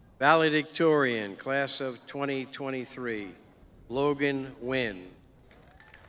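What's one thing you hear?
An elderly man speaks calmly into a microphone over a loudspeaker.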